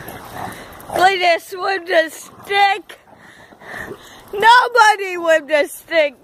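Dogs yelp and whine shrilly while playing.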